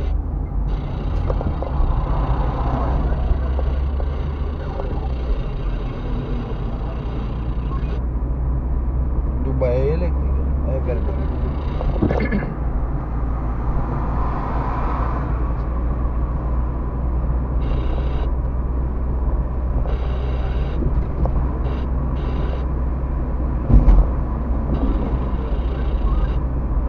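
A car's engine hums steadily with road noise from inside.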